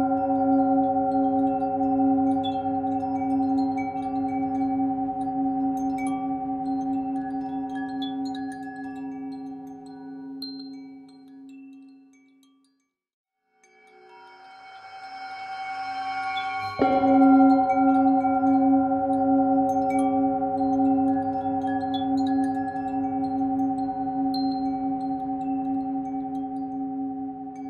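A metal singing bowl hums with a steady, ringing tone.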